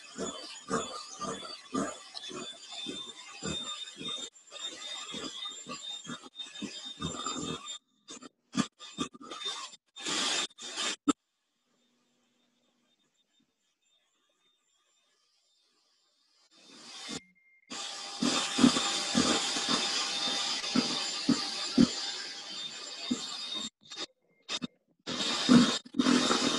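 Mixer beaters clatter against a metal bowl.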